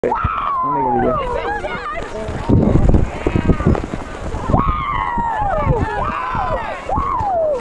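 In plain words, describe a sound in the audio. Young people shout and squeal loudly close by, outdoors.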